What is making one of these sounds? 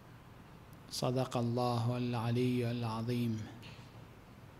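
A man speaks slowly through a microphone.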